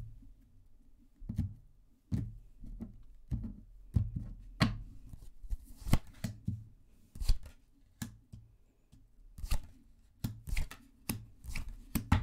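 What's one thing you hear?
Cards tap and slide on a wooden table.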